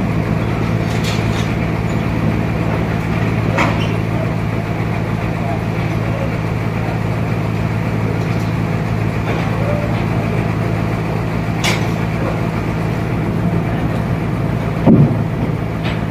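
Heavy wooden planks knock and thud as they are handled.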